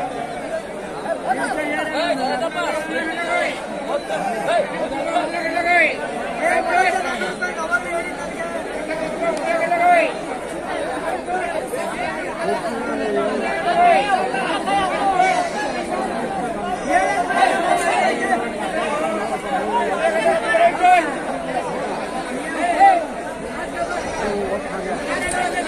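Many sheep bleat loudly and often, close by.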